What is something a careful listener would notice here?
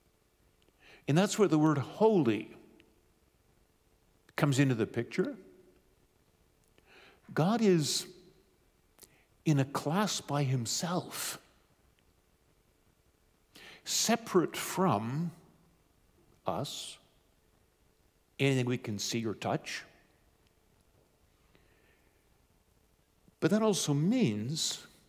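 A middle-aged man speaks calmly into a microphone, with pauses between phrases.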